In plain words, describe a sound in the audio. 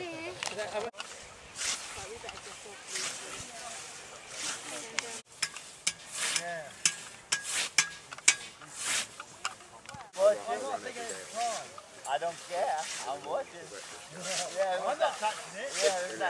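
A scythe swishes through long grass in quick strokes.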